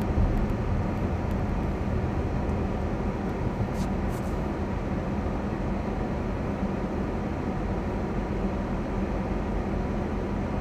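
Tyres roll slowly over a paved road.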